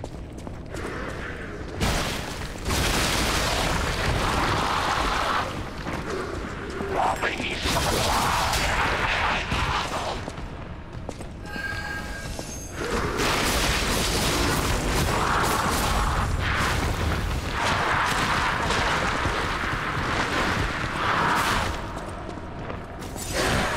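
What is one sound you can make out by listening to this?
Water splashes underfoot as a figure wades.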